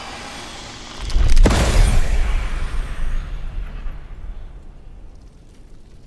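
A magical burst booms with a deep rumble and slowly fades.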